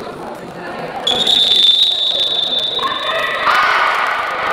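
A referee blows a long, shrill whistle in a large echoing hall.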